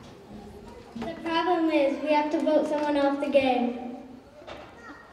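A young boy speaks loudly into a microphone in a large hall.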